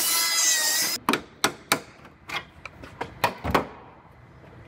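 A hammer knocks on metal.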